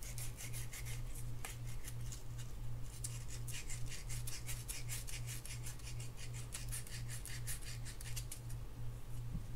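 Fingers rub and scrape a small metal part with quick, rasping strokes.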